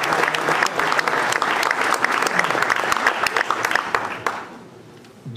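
An audience claps and applauds in a large room.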